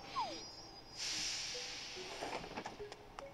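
A train rushes past with a soft whoosh.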